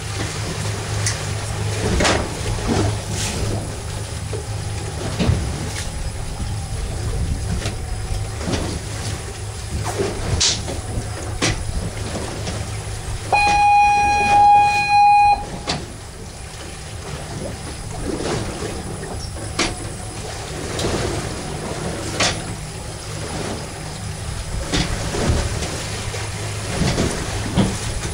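Water splashes against the hull.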